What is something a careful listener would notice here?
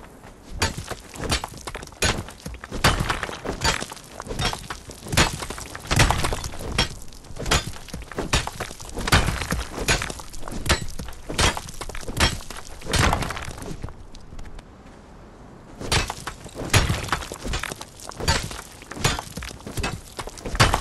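A pickaxe strikes rock again and again with sharp cracks.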